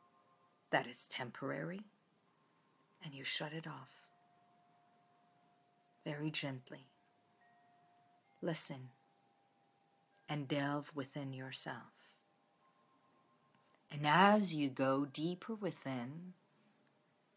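A middle-aged woman speaks calmly and close, in short bursts with pauses.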